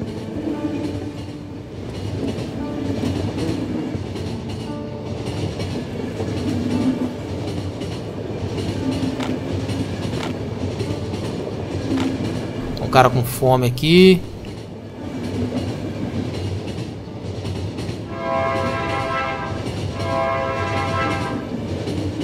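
A train rumbles steadily along its tracks.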